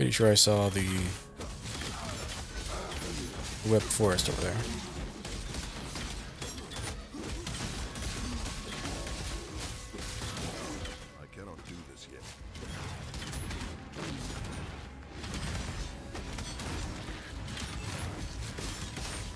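Magic blasts and hits crackle and thud in a rapid fight.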